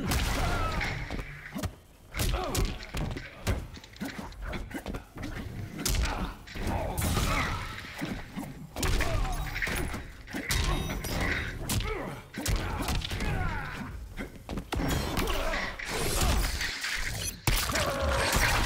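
Punches and kicks land with heavy thuds and cracks in a fighting game.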